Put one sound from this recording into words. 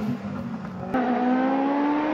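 A car engine drones in the distance.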